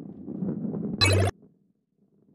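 A ball lands on a bouncy pad with a sharp burst.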